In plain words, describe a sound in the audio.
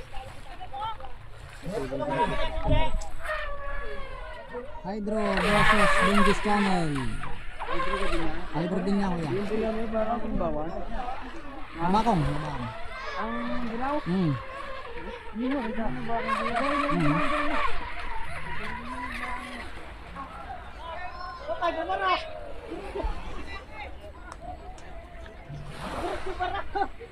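Men talk and call out excitedly nearby.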